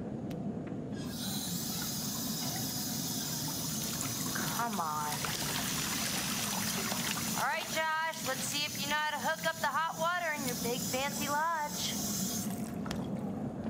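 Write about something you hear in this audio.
Water gushes from a tap into a bathtub.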